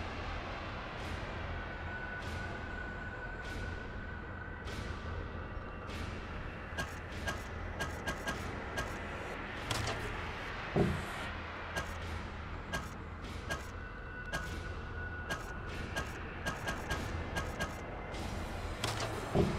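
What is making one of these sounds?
Soft game menu clicks tick as selections change.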